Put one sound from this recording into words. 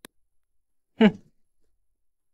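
A young man scoffs briefly.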